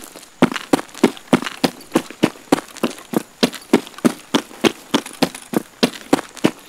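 Quick footsteps run over hard, gritty ground.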